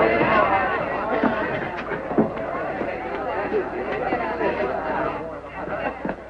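Men's feet scuffle and bodies thump in a struggle.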